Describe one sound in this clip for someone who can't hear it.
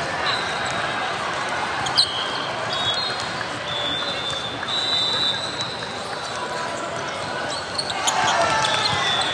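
Many voices chatter and call out across a large echoing hall.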